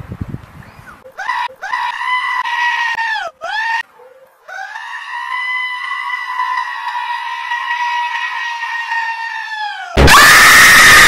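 A goat bleats loudly, like a human scream.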